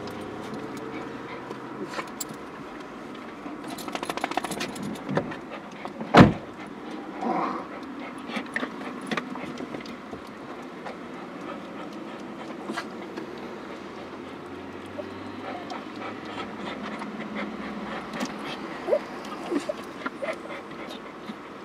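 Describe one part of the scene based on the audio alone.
A car engine idles quietly from inside the car.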